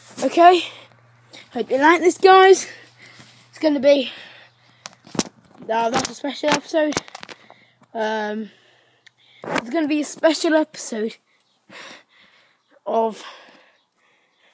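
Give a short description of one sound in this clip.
A boy talks with animation close to the microphone.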